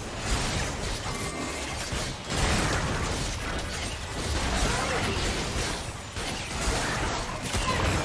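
Fantasy game spell effects crackle and whoosh during a fight.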